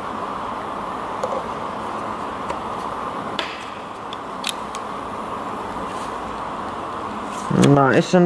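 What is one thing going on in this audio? A metal tool clinks against an engine part.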